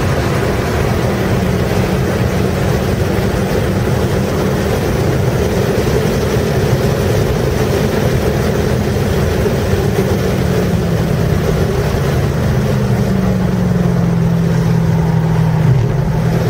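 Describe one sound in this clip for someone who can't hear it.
A car engine roars loudly at high speed from inside the cabin.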